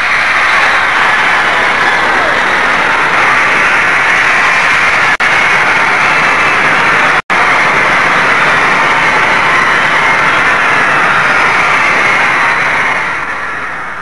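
A large crowd screams loudly and without pause, then fades.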